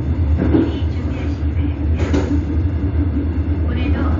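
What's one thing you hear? Train noise echoes inside a tunnel.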